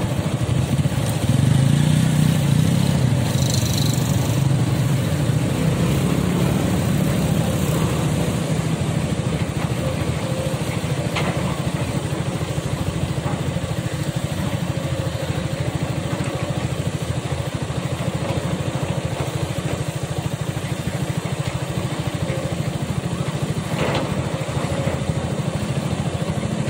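Excavator engines rumble steadily in the distance, outdoors.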